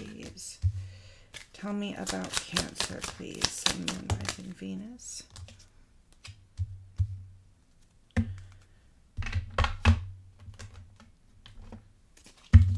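Cards shuffle and tap on a table.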